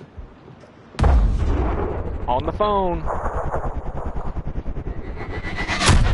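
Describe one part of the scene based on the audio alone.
A sniper rifle fires a loud shot that booms and rumbles.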